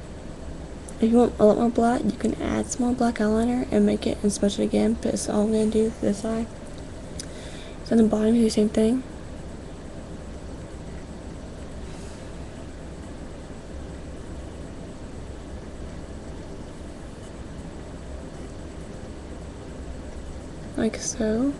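A young woman talks casually and close to a microphone.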